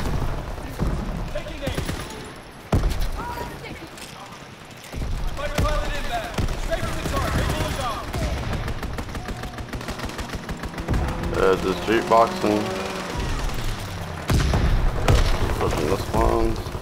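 A machine gun fires in loud bursts.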